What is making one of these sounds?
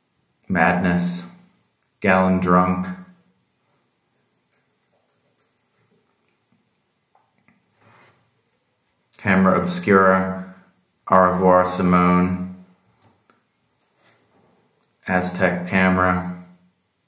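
A middle-aged man speaks calmly and close to the microphone, in short phrases with pauses.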